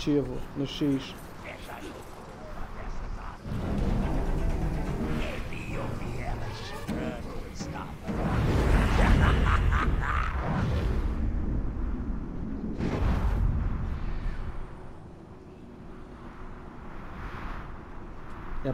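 A middle-aged man talks calmly into a microphone.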